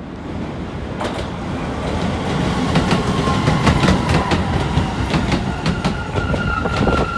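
A train rolls in, its wheels clacking over rail joints.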